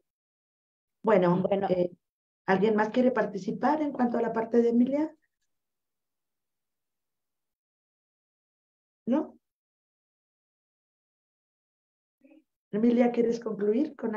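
An older woman speaks with animation over an online call.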